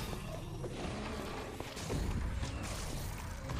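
A magic projectile fires with a sharp zap.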